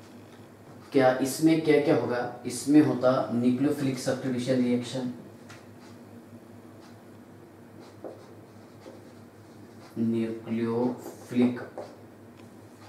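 A man speaks calmly and clearly, as if explaining, close to a microphone.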